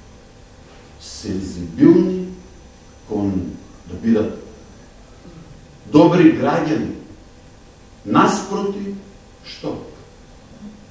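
A middle-aged man speaks with animation into a microphone, with pauses between phrases.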